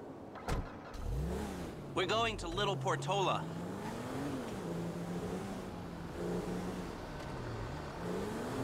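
A car engine starts and revs, rising and falling in pitch as the car drives off.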